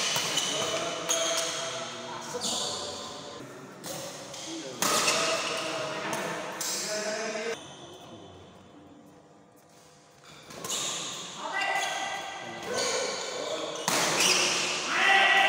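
Spectators shout and cheer nearby.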